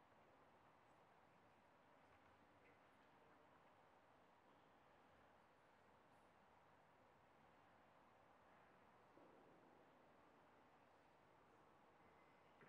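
Sheets of paper rustle softly among a large audience.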